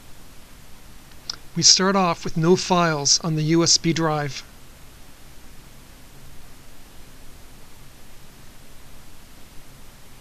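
A computer mouse clicks.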